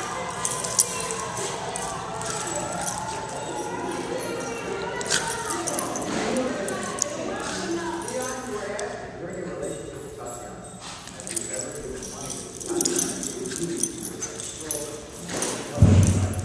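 Two small dogs growl while play-fighting.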